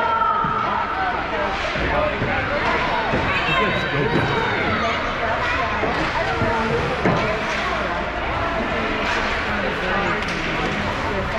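Skate blades scrape and hiss across ice in a large echoing hall.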